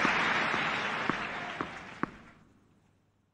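A crowd murmurs and then falls quiet.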